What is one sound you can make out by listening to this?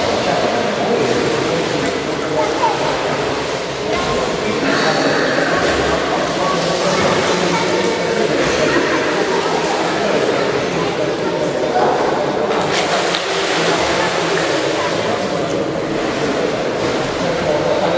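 Water splashes as a swimmer kicks and strokes nearby.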